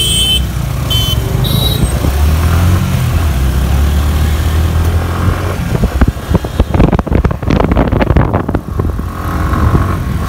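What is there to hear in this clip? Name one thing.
A motorcycle engine hums steadily while riding.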